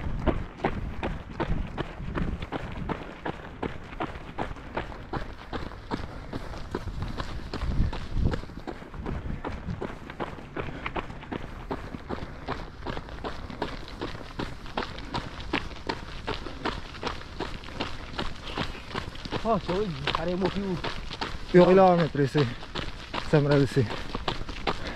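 Running footsteps crunch steadily on gravel.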